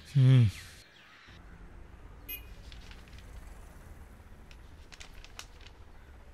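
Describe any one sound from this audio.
Paper rustles softly as pages are turned.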